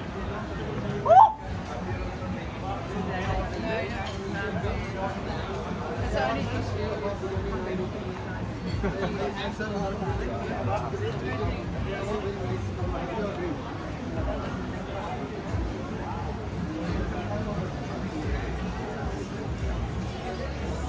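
People chatter outdoors.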